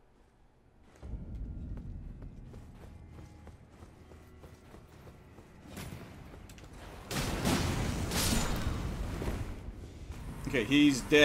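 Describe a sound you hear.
Low rumbling ambience drones in a large echoing hall.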